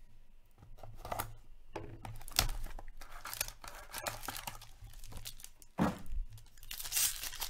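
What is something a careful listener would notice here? Cardboard packs tap and scrape against each other.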